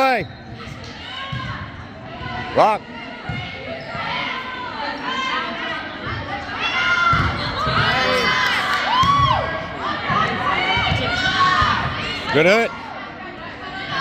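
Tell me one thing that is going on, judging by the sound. Young women shout and call out in a large echoing gym.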